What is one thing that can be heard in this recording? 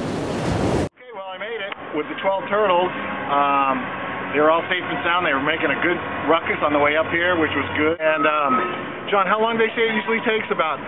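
A middle-aged man talks calmly and close by, outdoors.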